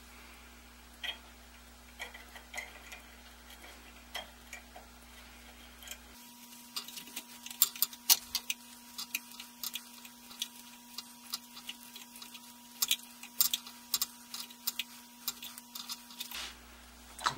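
Small metal parts click and tap together as they are handled.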